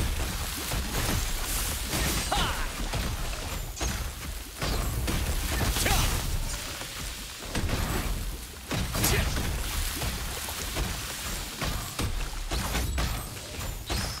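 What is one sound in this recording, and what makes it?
Magic spells crackle and whoosh in quick bursts.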